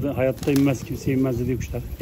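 Pigeons flap their wings close by.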